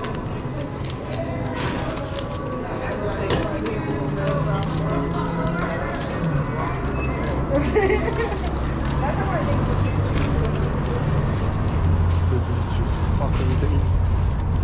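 A plastic food container crinkles and clicks in a hand.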